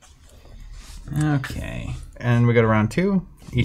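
A second man answers and talks with animation.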